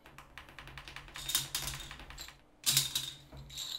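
Plastic game pieces click and clatter on a table.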